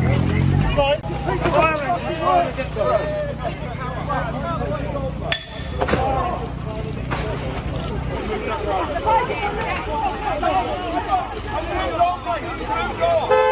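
A crowd of men and women talk and shout outdoors, close by.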